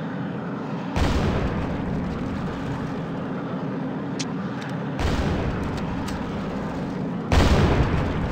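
Explosions boom loudly, one after another.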